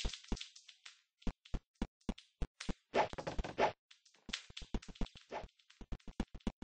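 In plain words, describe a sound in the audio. Quick footsteps thud in a steady running rhythm.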